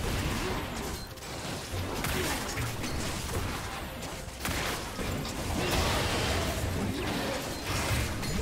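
Game spell effects crackle and whoosh in a fight against a large monster.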